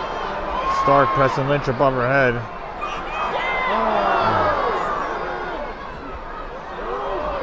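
A large crowd cheers and shouts in an echoing indoor arena.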